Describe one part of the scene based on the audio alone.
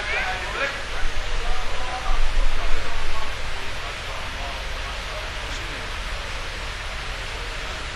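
A large crowd of men calls out together in a big echoing hall.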